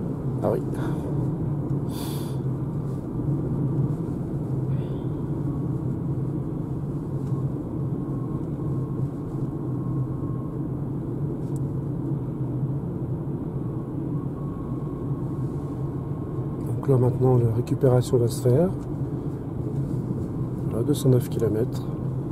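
A car's engine hums steadily as it drives along a road.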